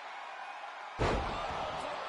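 A body slams hard onto a mat with a loud thud.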